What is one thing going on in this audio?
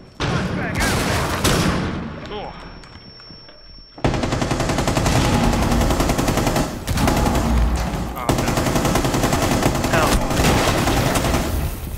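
Rapid gunfire rings out in bursts.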